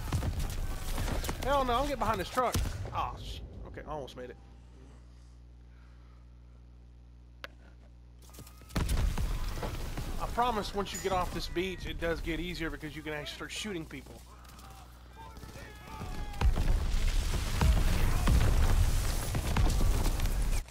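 Rifles and machine guns fire in rapid bursts.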